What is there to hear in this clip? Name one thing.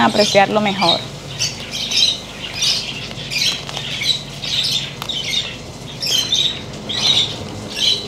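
Leaves and soil rustle softly as hands pull at a potted plant.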